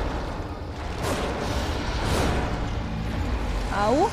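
A monster growls and shrieks nearby.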